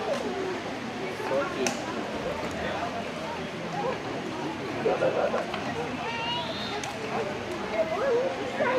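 A crowd of men and women chatter outdoors at a distance.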